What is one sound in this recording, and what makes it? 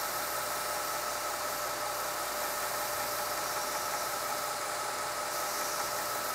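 Metal grinds against a sanding belt with a harsh hiss.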